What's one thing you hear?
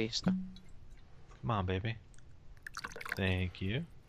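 A glass clinks on a wooden table.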